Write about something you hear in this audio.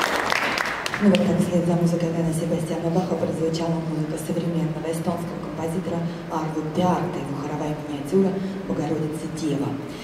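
A man speaks through a microphone to an audience.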